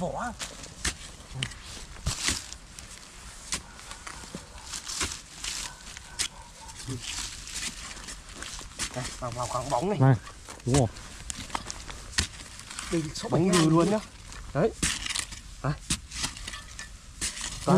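A small shovel scrapes and chops into damp soil.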